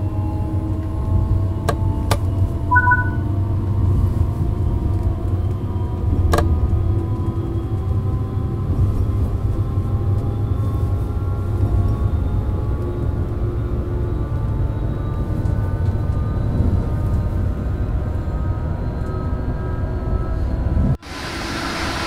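An electric train hums and rumbles steadily as it speeds up along the tracks, its motor whine slowly rising in pitch.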